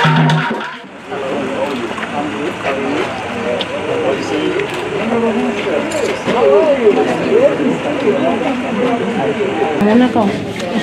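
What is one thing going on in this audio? Several men talk and greet one another nearby.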